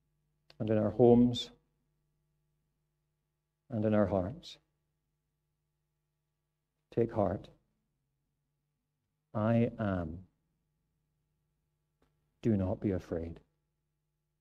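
A middle-aged man reads aloud calmly into a microphone, in short phrases with pauses.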